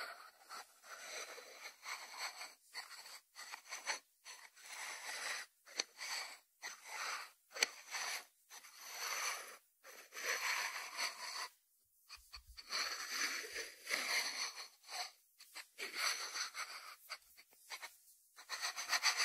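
Fingertips rub and scratch over a ceramic lid.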